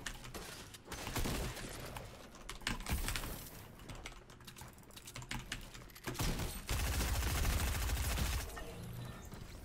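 Video game gunfire and effects bang and crackle.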